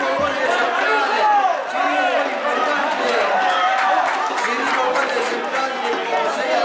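A crowd of spectators cheers and claps outdoors.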